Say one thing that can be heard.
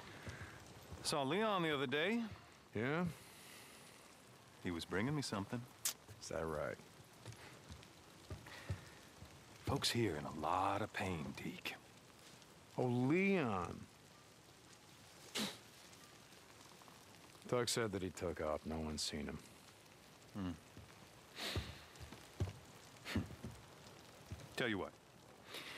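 A second man answers in a relaxed, drawling voice.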